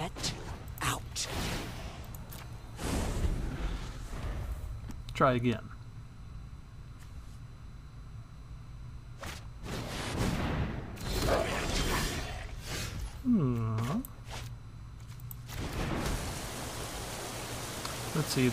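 A card game plays soft whooshing and thudding effects as cards are played.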